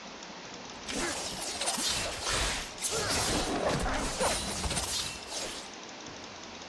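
Sword slashes and impact effects ring out in a fight with a monster.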